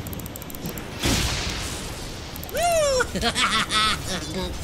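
Game spells blast and whoosh during a fight.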